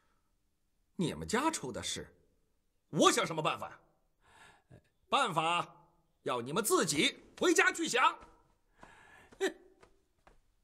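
A middle-aged man speaks sternly and loudly, close by.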